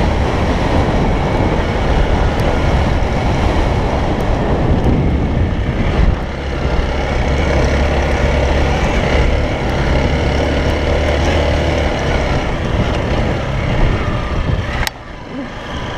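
A motorcycle engine rumbles and revs while riding over rough ground.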